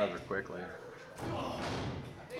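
A sharp slap of a hand striking bare skin rings out.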